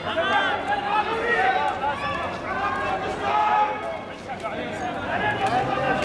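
A man speaks loudly through a megaphone outdoors.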